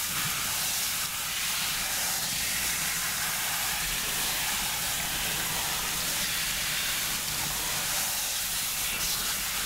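Fingers rub and massage wet hair.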